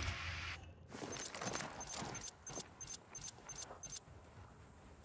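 A rifle fires a quick series of shots.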